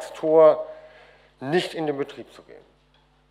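A man speaks briefly into a microphone in a large hall.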